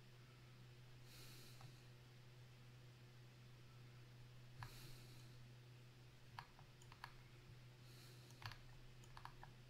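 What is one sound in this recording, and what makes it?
A young man breathes sharply near a close microphone.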